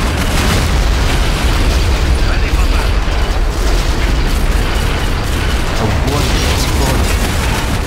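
Rockets whoosh and explode with loud booms.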